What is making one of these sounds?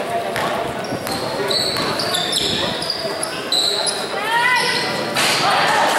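Sneakers squeak sharply on a court floor.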